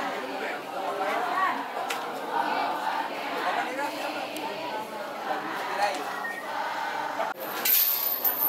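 A crowd of women and men chatter all around outdoors.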